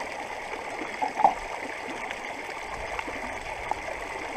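Water sloshes and splashes as a metal cup scoops it into a pan.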